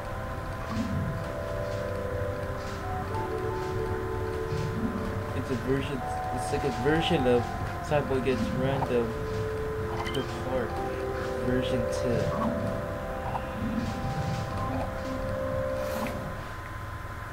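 Gentle, playful music plays and then stops.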